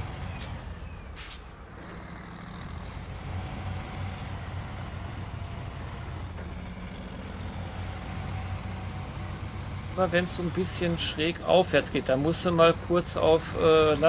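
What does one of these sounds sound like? A heavy truck engine rumbles low and steady.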